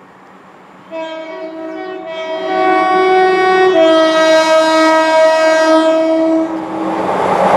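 A train sounds its horn as it approaches.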